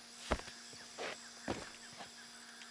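Heavy thuds sound as a person climbs down and lands on the ground.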